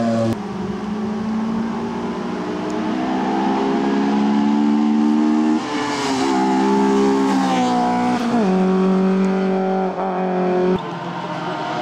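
A rally car engine roars loudly as it speeds past, shifting gears.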